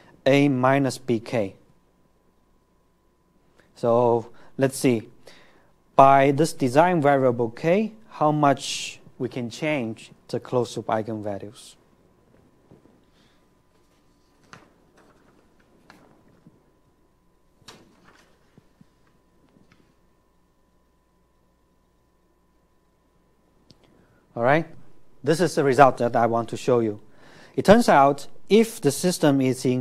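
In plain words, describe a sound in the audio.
A man lectures calmly through a microphone, with pauses.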